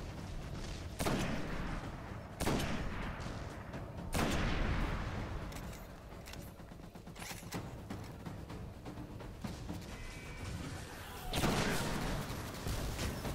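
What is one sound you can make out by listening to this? Loud rifle shots boom, each followed by a ringing echo.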